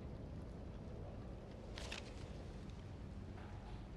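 Paper banknotes rustle softly as a hand picks them up.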